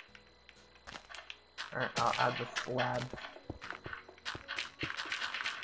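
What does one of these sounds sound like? Stone blocks crack and crumble as they are broken.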